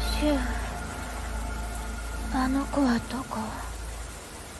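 A young woman speaks softly and questioningly.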